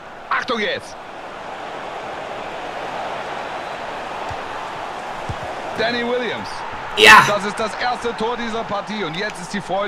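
A young man speaks excitedly into a nearby microphone.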